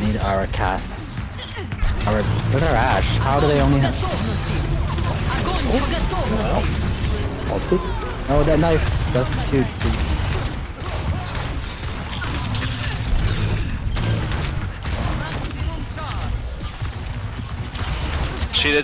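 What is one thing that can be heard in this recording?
Energy guns zap and crackle in rapid bursts.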